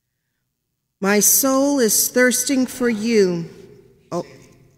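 A woman sings a short phrase through a microphone in an echoing room.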